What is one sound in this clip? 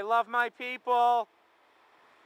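A man sings short notes close by.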